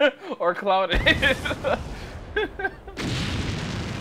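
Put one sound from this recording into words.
A huge explosion booms.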